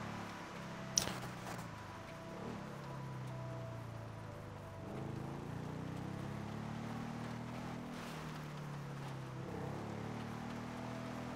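A quad bike engine drones and revs steadily.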